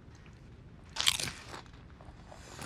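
A man crunches a crisp chip.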